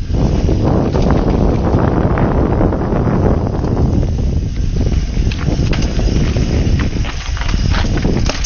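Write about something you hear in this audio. Bicycle tyres rumble and crunch over a rough dirt trail.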